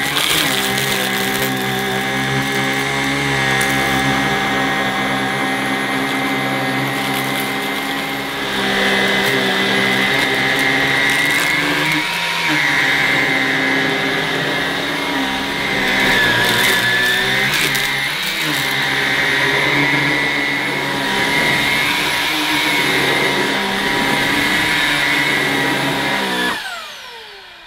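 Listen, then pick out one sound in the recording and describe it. A vacuum cleaner head brushes back and forth over carpet.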